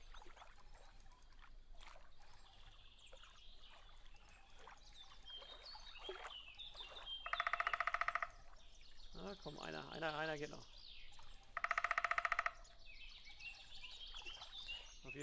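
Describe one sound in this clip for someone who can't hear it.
A fishing reel whirs as its line is wound in.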